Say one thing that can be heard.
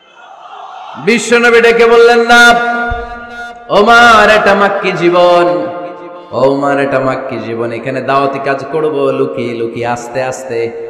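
A young man recites in a loud, drawn-out chanting voice through a microphone, echoing.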